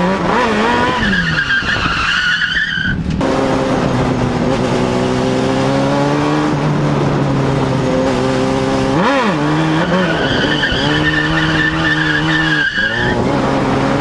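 Tyres squeal on the track.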